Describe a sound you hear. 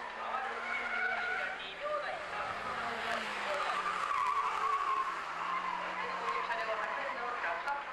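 Tyres squeal on tarmac.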